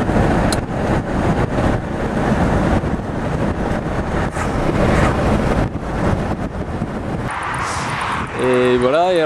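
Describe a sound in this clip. A car drives along with a steady rumble of road noise.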